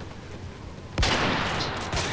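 A sniper rifle fires a sharp, loud shot.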